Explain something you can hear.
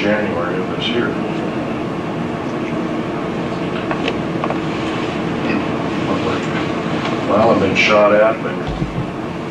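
A middle-aged man speaks calmly to a room, heard from a few metres away with a slight echo.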